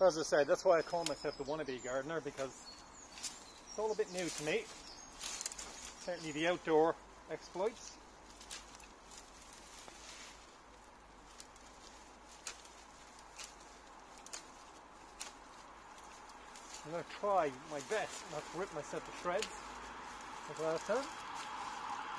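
Garden shears snip through twigs and branches.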